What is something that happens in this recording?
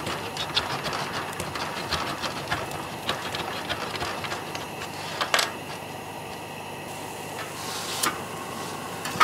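Items clatter on a table.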